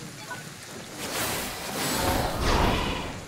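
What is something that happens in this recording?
A strong rush of wind roars past.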